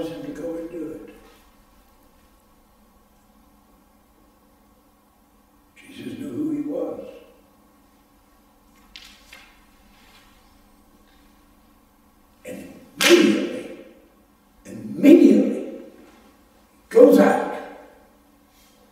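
An elderly man preaches through a microphone in an echoing room, speaking in slow bursts with long pauses.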